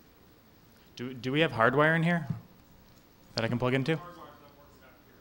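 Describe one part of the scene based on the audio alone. A man speaks briefly into a microphone, heard through a loudspeaker in a hall.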